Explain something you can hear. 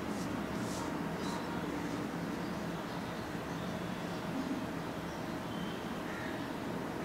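Cloth rustles softly as hands smooth and handle it.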